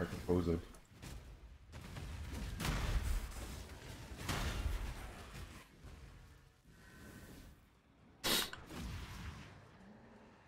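Magic blasts and explosions burst repeatedly.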